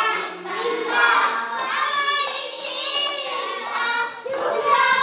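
Children sing together.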